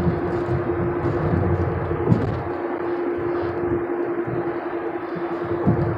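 Tyres and wind rush steadily on a moving car.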